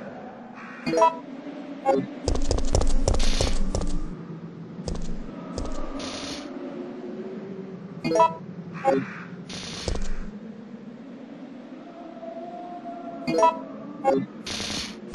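Short electronic beeps sound now and then.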